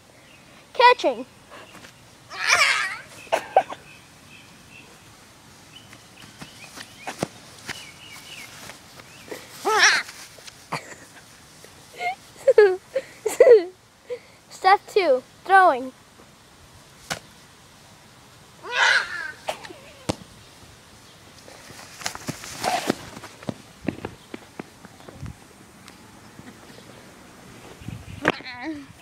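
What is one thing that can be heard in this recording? A young boy talks and shouts excitedly nearby, outdoors.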